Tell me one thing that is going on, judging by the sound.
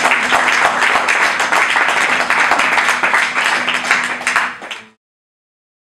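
An acoustic guitar is strummed briskly.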